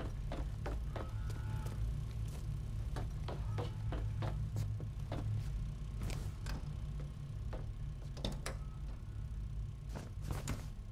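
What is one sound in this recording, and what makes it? Footsteps tap on a metal floor.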